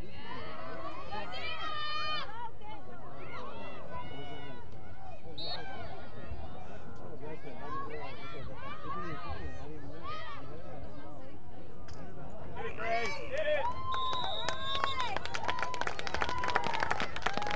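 Young women shout and call out to each other on an open field.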